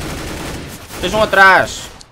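A young man exclaims loudly into a close microphone.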